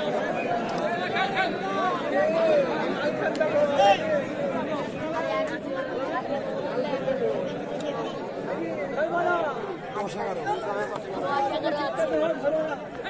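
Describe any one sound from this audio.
A large crowd outdoors shouts and cheers throughout.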